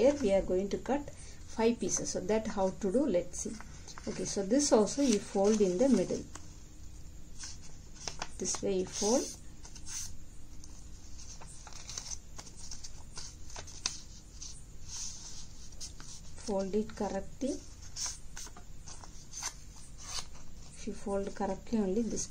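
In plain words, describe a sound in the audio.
Paper rustles and creases as it is folded.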